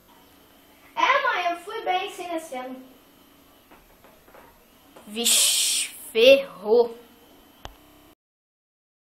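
A young boy speaks with animation close to a microphone.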